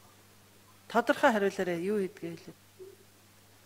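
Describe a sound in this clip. A middle-aged woman speaks briefly into a microphone.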